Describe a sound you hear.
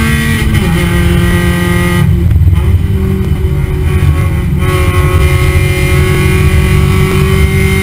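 A race car engine roars loudly at high revs, close by.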